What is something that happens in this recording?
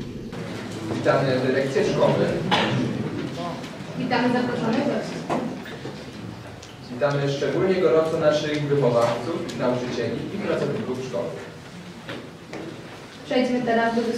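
A choir of young voices sings together.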